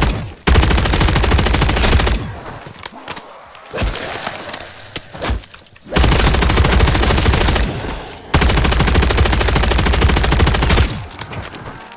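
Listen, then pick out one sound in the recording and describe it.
A heavy machine gun fires in long rapid bursts.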